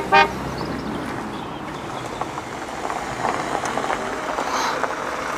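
A car rolls slowly over gravel.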